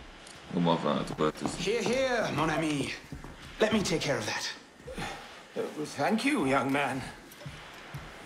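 A young man speaks calmly and warmly, close by.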